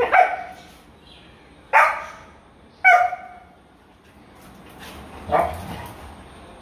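A dog barks sharply, the bark echoing off hard walls.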